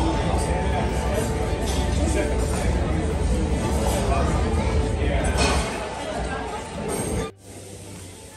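A crowd of diners chatters in the background of a busy room.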